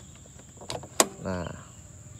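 A plastic lid clicks open.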